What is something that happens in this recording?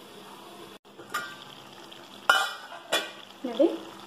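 A metal lid clinks as it is lifted off a pan.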